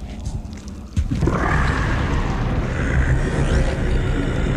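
An energy weapon fires with a loud buzzing hum.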